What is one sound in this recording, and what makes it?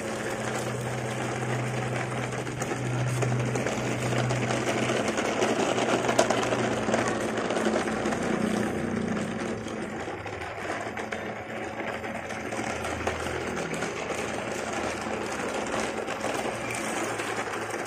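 Plastic toy truck wheels roll and rattle over gravel and concrete.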